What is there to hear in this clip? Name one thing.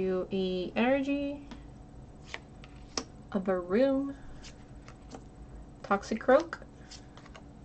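Trading cards flick and slide against each other in a hand.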